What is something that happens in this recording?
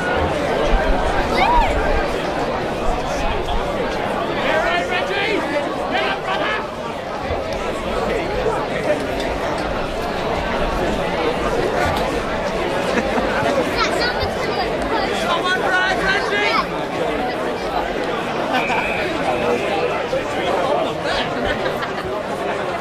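Male players shout to each other across an open field outdoors.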